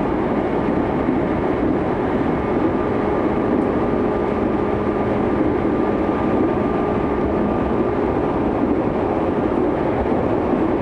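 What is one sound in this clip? An electric commuter train runs at speed, heard from inside the carriage.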